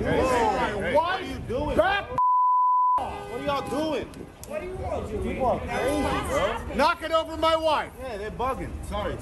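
An older man shouts angrily at close range.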